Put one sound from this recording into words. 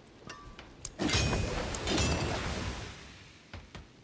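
A loud magical whoosh and shimmer rings out, then fades.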